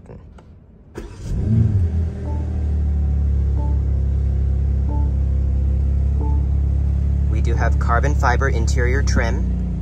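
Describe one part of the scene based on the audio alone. A car engine starts with a roar and then idles with a low, steady rumble.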